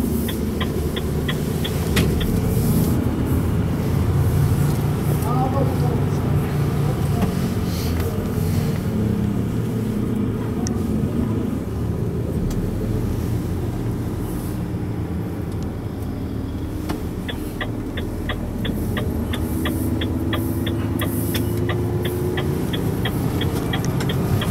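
A truck engine rumbles and drones steadily from inside the cab.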